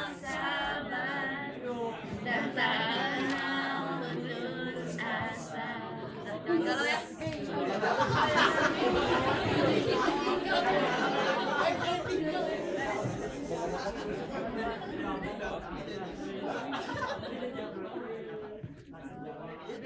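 Teenage boys talk and murmur nearby in an echoing hall.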